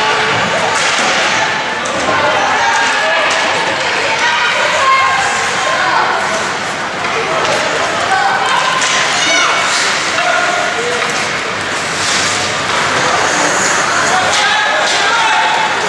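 A crowd of spectators talks and calls out in a large echoing rink.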